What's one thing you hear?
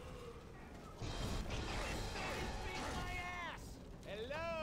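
A monster snarls and growls fiercely during an attack.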